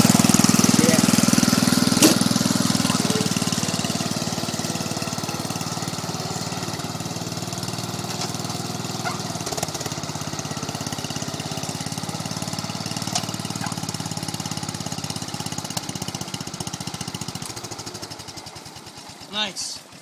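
A small tractor engine runs with a steady rumble, then dies away.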